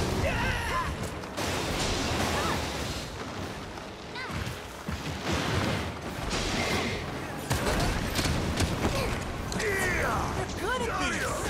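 A huge beast roars and screeches.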